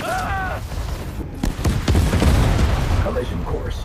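Explosions boom and crackle loudly.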